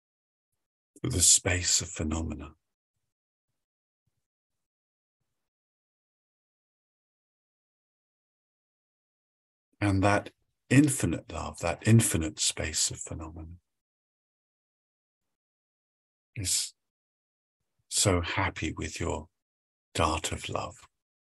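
A middle-aged man speaks calmly in short bursts over an online call.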